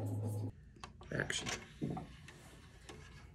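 A disc tray slides open with a soft click.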